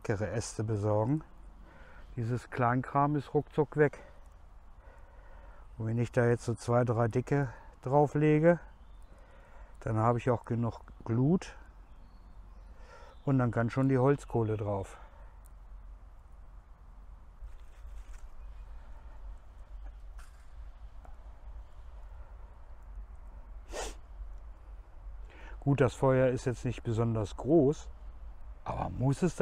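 A man talks calmly close by, outdoors.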